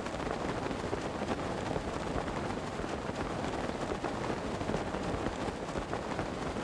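Wind rushes past steadily during a glide through the air.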